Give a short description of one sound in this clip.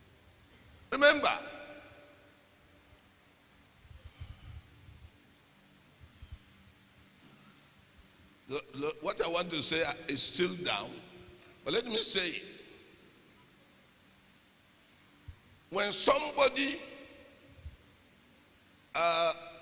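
A middle-aged man speaks through a microphone with animation, in bursts with pauses, in an echoing hall.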